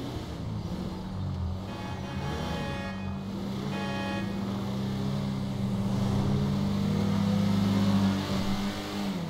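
A car engine hums steadily and grows louder as the car speeds up.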